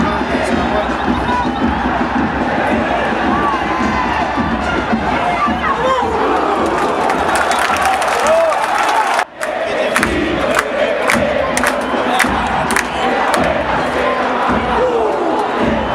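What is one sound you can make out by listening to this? A large crowd sings and chants loudly outdoors.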